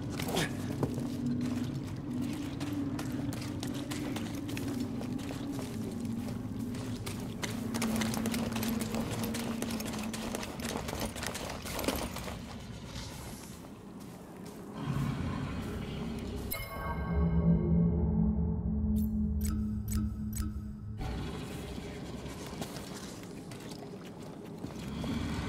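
Footsteps rustle through grass as a man runs.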